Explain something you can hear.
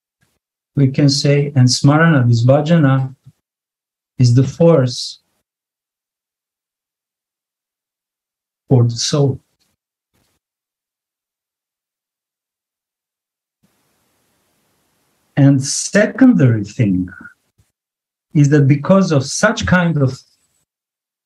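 A man speaks calmly in phrases, with long pauses, heard through an online call.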